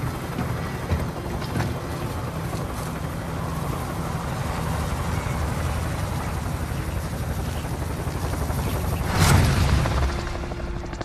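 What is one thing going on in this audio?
An aircraft engine drones loudly and steadily.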